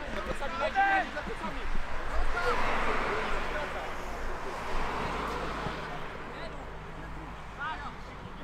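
Young men shout to each other across an open outdoor pitch, heard from a distance.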